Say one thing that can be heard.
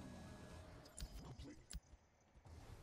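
Sharp electronic game effects thud and zap.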